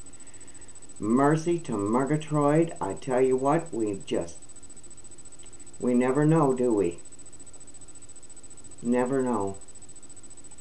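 An elderly woman speaks calmly and close up, in short bursts with pauses.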